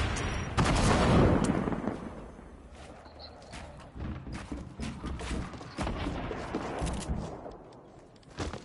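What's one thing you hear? Wooden walls and ramps snap into place with knocks.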